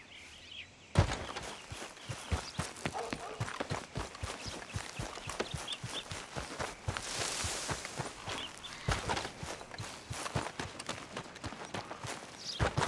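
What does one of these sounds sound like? Footsteps run through grass and gravel.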